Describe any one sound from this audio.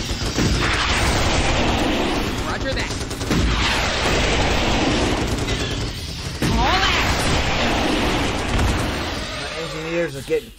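Gunfire and explosions rumble in a noisy battle.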